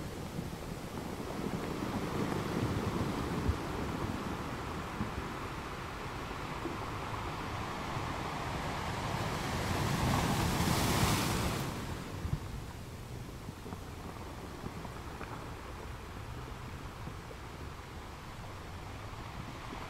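Water washes and swirls over the rocks.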